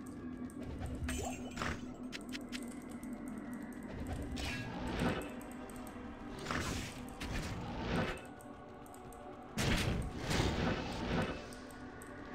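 Magic spells crackle and burst in loud rushes.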